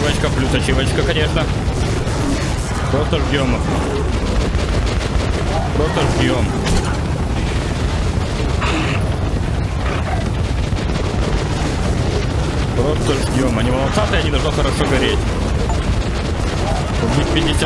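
Flames crackle and burst.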